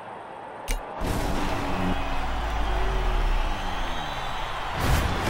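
A rally car engine roars and revs.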